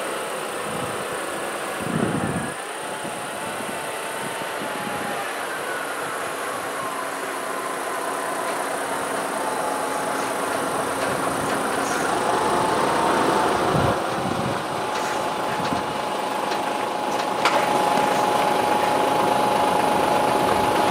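A heavy truck engine rumbles as it slowly approaches and grows louder.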